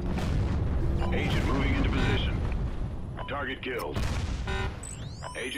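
A heavy explosion booms and rumbles.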